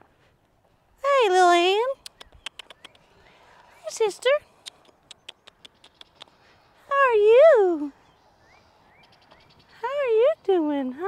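A young woman calls out in a high, coaxing sing-song voice close by.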